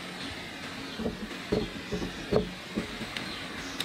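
Hands tap and pat on a wooden tabletop.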